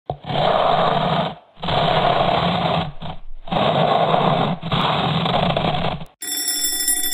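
A person snores loudly in long, rasping breaths.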